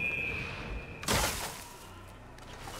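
A body lands in a pile of hay with a loud, rustling thud.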